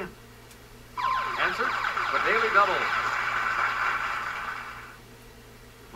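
A bright electronic fanfare plays from a game and fades.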